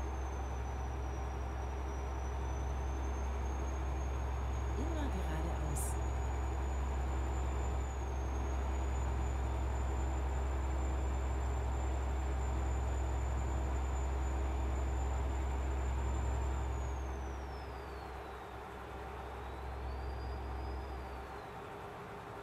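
A truck engine drones steadily with a high whine, then winds down.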